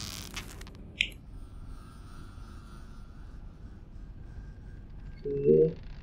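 A bowstring creaks as a bow is drawn.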